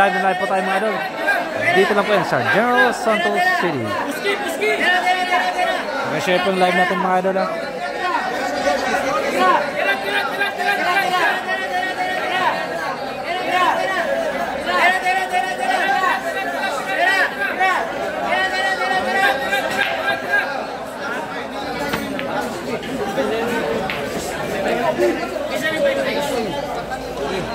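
A crowd of men talks and calls out loudly all around.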